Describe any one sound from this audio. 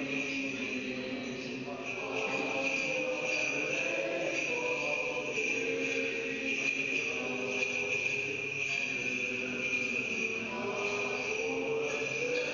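A man chants in a steady sung voice in a large echoing hall.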